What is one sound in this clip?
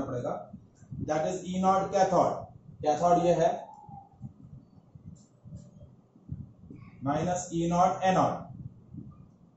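A young man speaks calmly, explaining, close by.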